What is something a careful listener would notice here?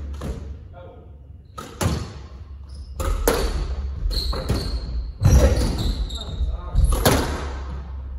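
A squash ball smacks off rackets and walls in an echoing court.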